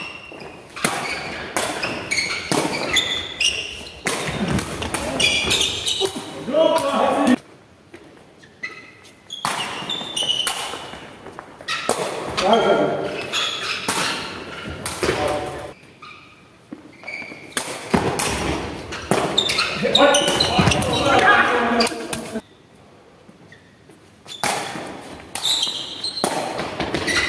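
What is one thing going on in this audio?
Men shout and call out to each other with animation, echoing in the hall.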